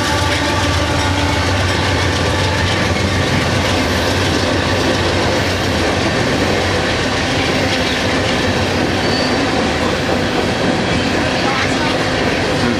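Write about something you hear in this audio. Freight cars rumble and clatter over the rails.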